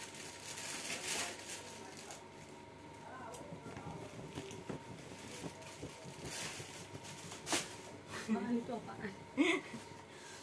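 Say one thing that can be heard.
Fleece sleeves swish and rustle.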